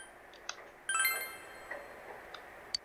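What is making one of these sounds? A bright electronic chime rings once.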